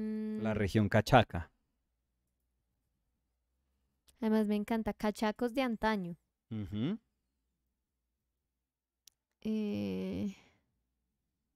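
A young woman speaks calmly into a microphone, in short bursts with pauses.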